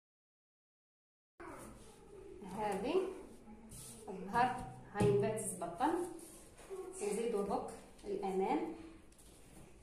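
Soft fabric rustles as it is smoothed and folded by hand.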